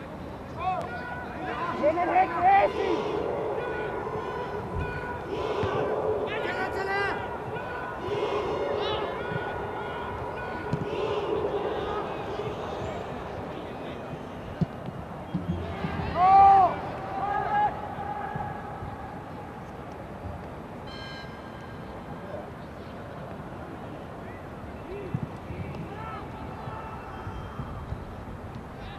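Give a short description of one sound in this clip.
A crowd murmurs and cheers in an open stadium.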